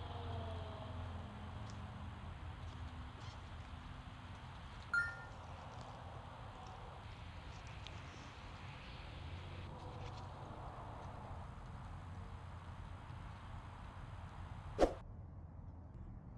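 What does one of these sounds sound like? Dry leaves rustle.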